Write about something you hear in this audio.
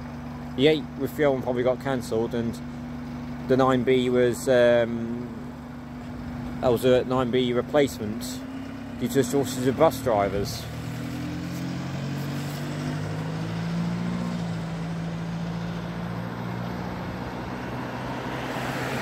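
A bus engine idles nearby, then pulls away.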